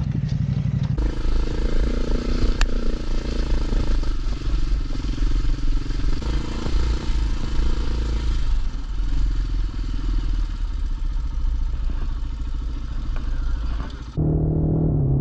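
Tyres crunch over a rough dirt track.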